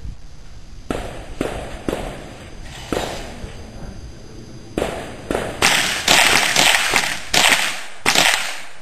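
A rifle fires a series of sharp shots outdoors.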